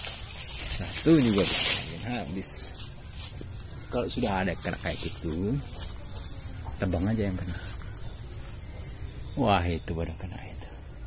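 A man speaks calmly, close by, in short phrases.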